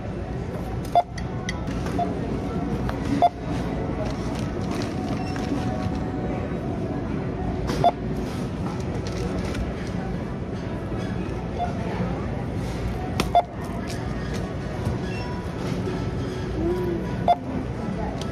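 Items knock and clatter now and then on a counter nearby.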